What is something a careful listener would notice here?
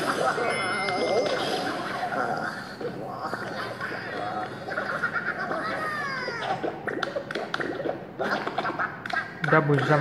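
Upbeat game music plays from a small tablet speaker.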